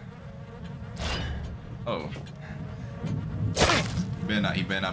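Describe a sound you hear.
A knife stabs into flesh with wet thuds.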